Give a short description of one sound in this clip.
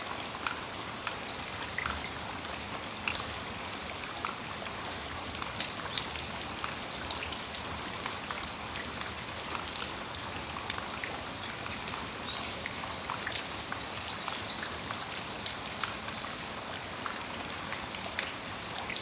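Steady rain falls outdoors with a soft hiss.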